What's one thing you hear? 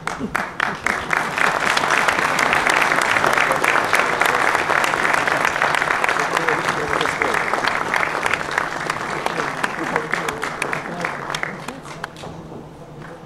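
An audience applauds steadily in a large hall, then fades.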